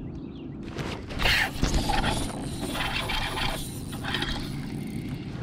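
A fishing reel clicks and whirs as the line is wound in.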